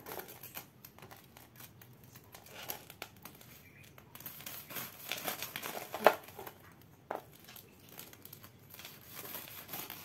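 A knife cuts through a crisp fried crust with crunchy taps.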